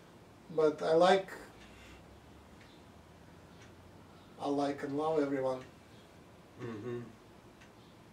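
A middle-aged man speaks calmly nearby, in short phrases with pauses.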